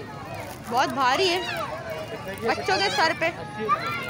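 Plastic wrapping rustles under a hand.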